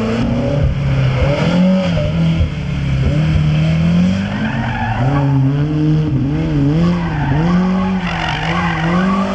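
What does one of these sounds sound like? A small car engine revs hard, rising and falling as the car slides through tight turns.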